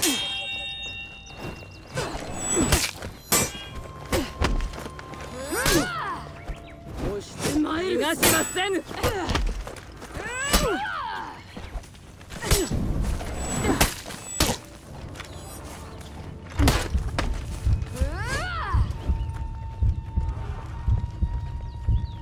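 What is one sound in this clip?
Metal blades clash and clang repeatedly.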